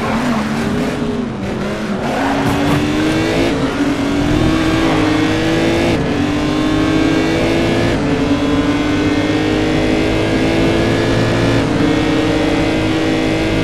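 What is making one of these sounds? Other racing car engines roar close by while passing.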